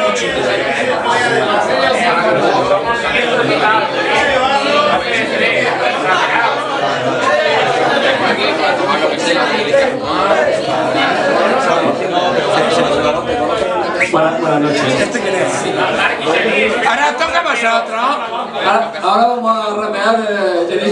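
A crowd of young men and women chatter and shout close by, all talking over each other.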